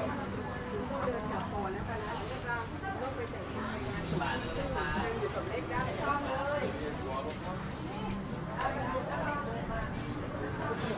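A crowd of men and women chatter nearby in a busy market.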